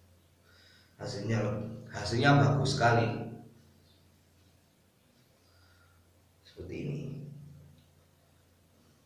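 A young man speaks briefly and close by.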